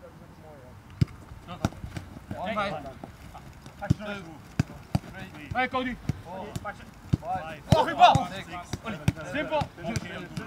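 Footballs thud as players kick them on grass.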